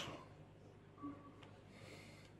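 A game console plays a short, soft startup chime.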